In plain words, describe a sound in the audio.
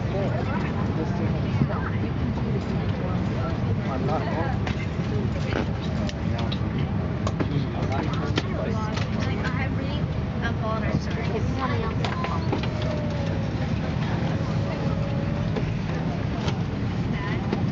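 A steady low engine drone hums.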